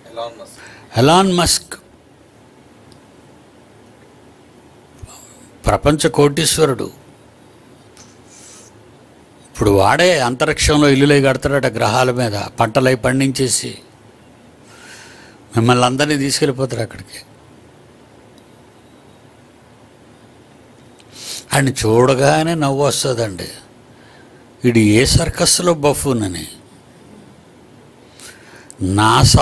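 An elderly man speaks slowly and with emphasis into a close microphone, in short bursts with long pauses.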